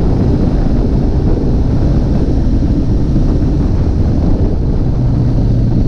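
Wind buffets loudly past the rider.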